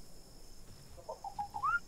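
A short whistle rises in pitch.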